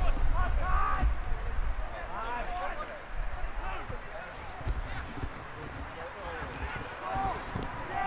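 Men on the sideline call out and shout close by, outdoors.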